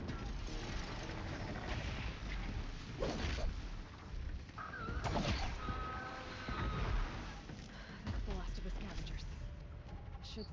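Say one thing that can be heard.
Explosions and metal crashes boom loudly.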